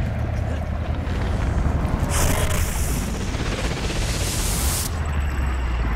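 Wind rushes past during a long fall.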